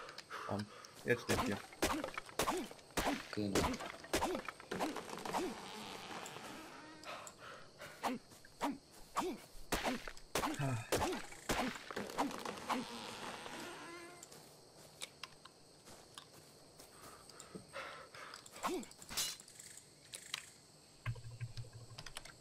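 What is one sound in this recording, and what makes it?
A pickaxe strikes a tree trunk with sharp, repeated thuds.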